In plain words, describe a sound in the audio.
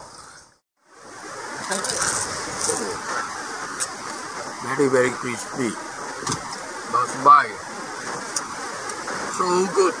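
An older man talks close by.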